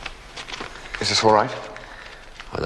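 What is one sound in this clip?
A younger man answers briefly nearby.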